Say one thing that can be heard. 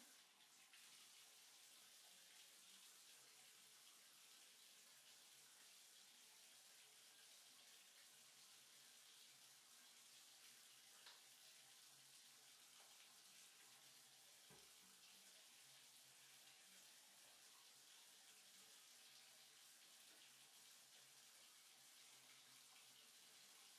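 Water runs from a tap into a bathtub.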